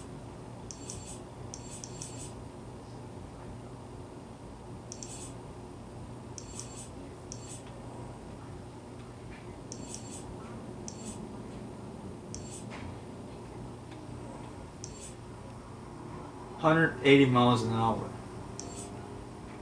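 Short, high electronic ticks sound from a video game menu in quick bursts.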